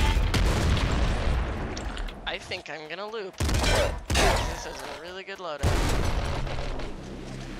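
Video game gunfire rattles rapidly.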